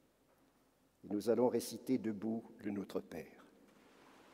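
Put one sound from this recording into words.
An elderly man speaks calmly through a microphone in a large echoing hall.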